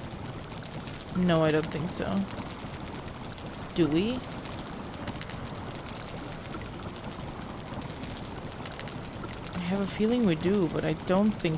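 A fire crackles steadily.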